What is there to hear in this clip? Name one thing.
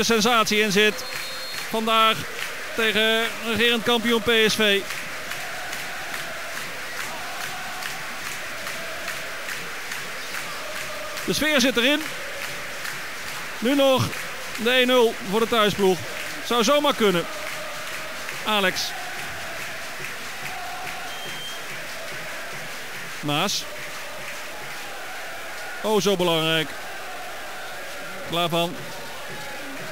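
A large crowd murmurs steadily in an open stadium.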